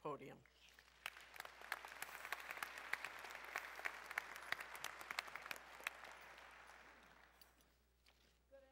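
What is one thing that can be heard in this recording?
A crowd applauds and then the applause fades away.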